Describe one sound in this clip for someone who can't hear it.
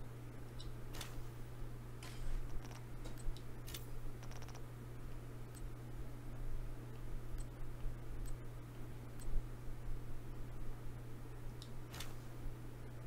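Short interface clicks sound as menu items are selected.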